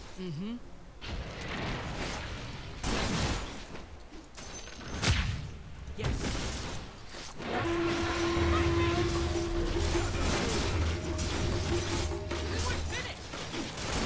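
Spells and blows crash in a fast game battle.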